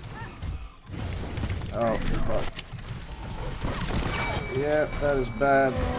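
Spell blasts and weapon hits crackle in a game battle.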